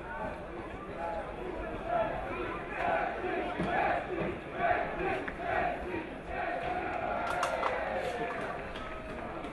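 Men call out to each other across an open field.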